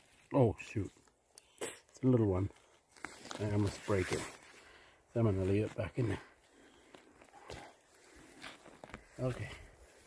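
A knife scrapes and cuts into soil.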